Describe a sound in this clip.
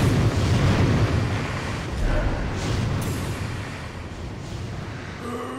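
A massive creature rumbles deeply and loudly.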